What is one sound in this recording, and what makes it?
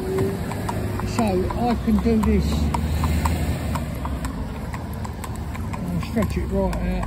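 A horse's hooves clop steadily on a paved road.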